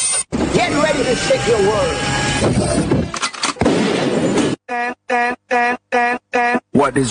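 Upbeat music plays loudly over loudspeakers.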